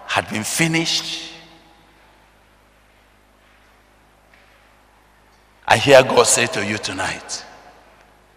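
A man preaches forcefully into a microphone, his voice echoing in a large hall.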